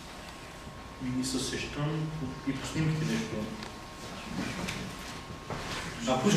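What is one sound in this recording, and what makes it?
A man speaks calmly and thoughtfully close by.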